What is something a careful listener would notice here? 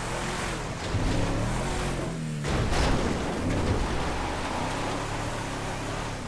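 Tyres crunch over rough dirt and rocks.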